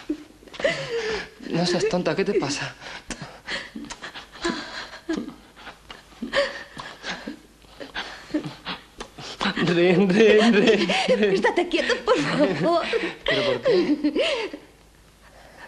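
A young woman moans and gasps breathlessly close by.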